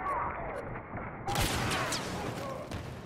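Laser blaster shots fire in a quick burst.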